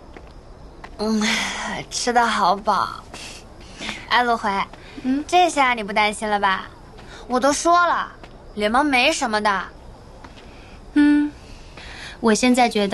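Two young women talk cheerfully close by.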